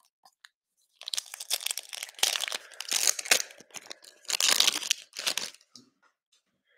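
A foil trading card pack crinkles and tears open.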